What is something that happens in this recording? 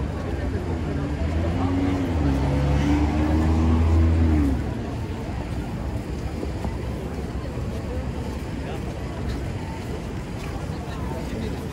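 Footsteps shuffle on pavement as a crowd crosses the street.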